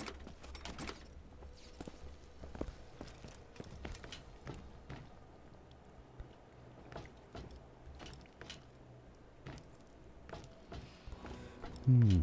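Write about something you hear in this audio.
Footsteps thud on metal floors at a steady walking pace.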